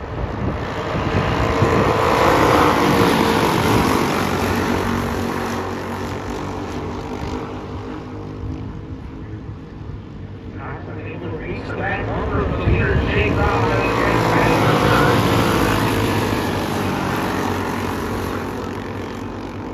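Racing karts' engines buzz loudly as they pass close by, rising and falling in pitch.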